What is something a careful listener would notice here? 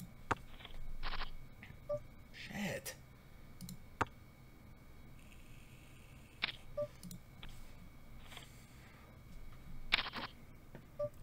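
Short digital clicks of poker chips sound from a game.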